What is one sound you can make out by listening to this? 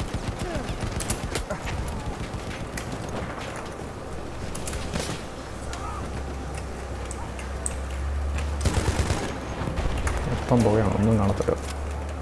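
Gunshots crack repeatedly in the distance.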